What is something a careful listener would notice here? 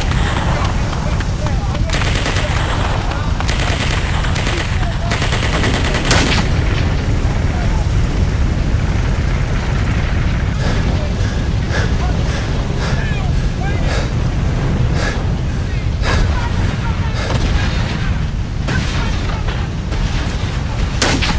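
Waves wash against a landing boat in the surf.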